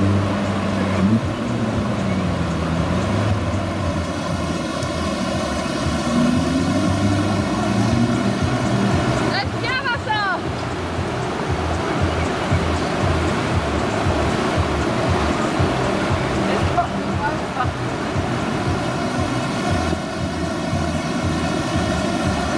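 Water rushes and churns loudly over a weir.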